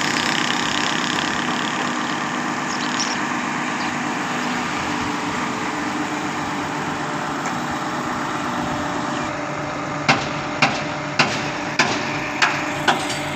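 A heavy truck's diesel engine idles steadily nearby.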